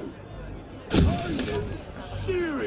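A smoke grenade bursts with a loud bang.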